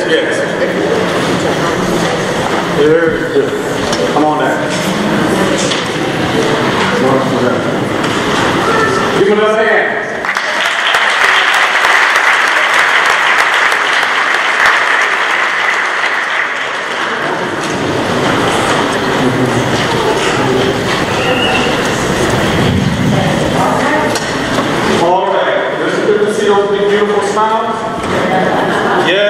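A group of children sings together in a large echoing hall.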